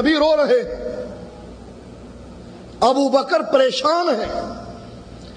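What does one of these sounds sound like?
A middle-aged man speaks with animation into a microphone, in an echoing room.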